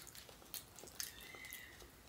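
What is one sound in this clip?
A metal spoon scrapes softly against a bowl.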